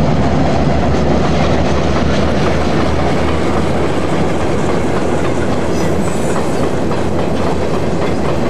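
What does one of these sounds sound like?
Freight wagons clatter rhythmically over the rails.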